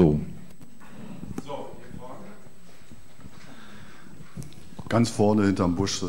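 A middle-aged man speaks calmly into a microphone over a loudspeaker.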